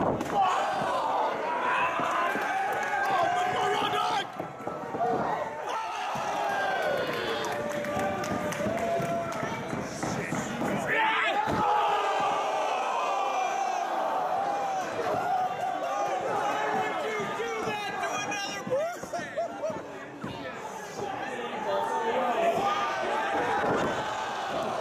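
A crowd cheers and chants loudly in a large hall.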